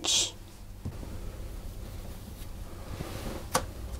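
A plastic cutter presses through soft dough.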